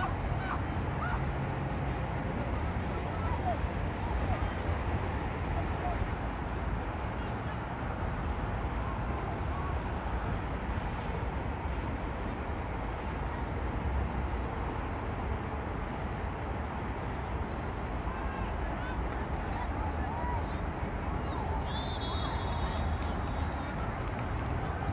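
Young women call out faintly in the distance.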